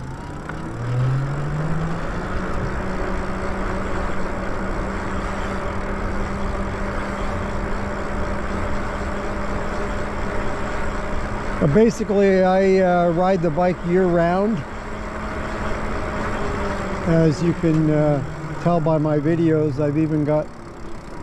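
An electric motor hums steadily as a bike rides along.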